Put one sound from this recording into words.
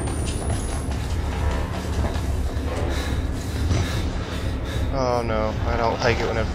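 Footsteps hurry across a hard floor.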